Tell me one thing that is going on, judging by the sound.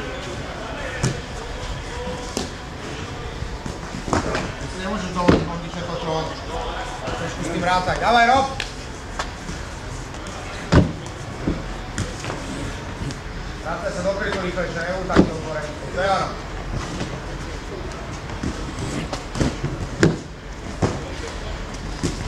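Feet thud heavily on a wooden box and on the ground.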